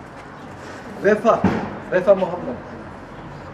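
A man speaks loudly and close by.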